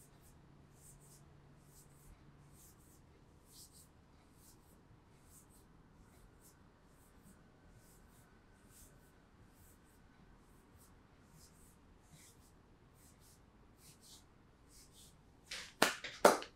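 Hands rub and brush softly against cloth.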